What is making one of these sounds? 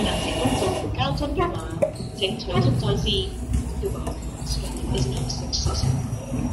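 A plastic bottle clatters and rattles inside a machine.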